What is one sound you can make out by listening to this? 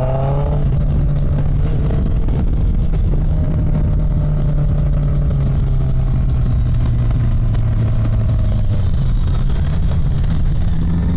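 A motorcycle engine hums steadily at a low pitch as it rides.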